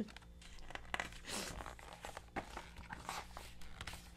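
Paper rustles as book pages turn.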